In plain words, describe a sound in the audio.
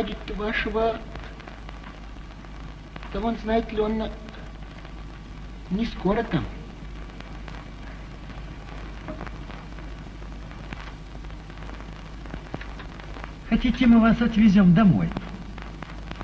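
A man speaks in short, gruff bursts with long pauses between them.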